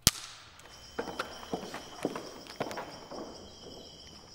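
Footsteps tap across a hard floor in a large room.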